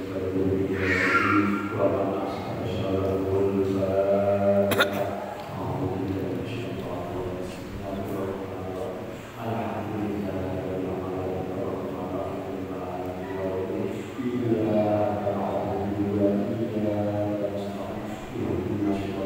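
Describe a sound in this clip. A middle-aged man chants melodically into a microphone, heard through a loudspeaker in an echoing hall.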